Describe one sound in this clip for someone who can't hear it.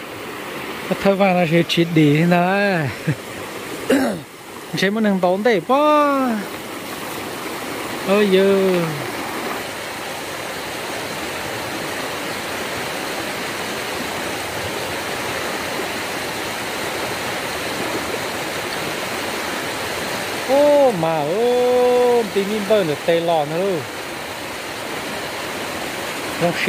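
A shallow stream rushes steadily over rocks.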